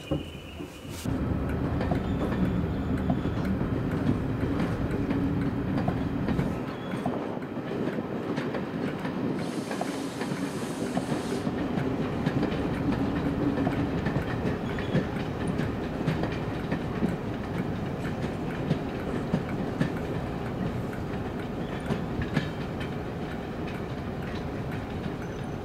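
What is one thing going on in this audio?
A diesel locomotive engine rumbles and drones close by.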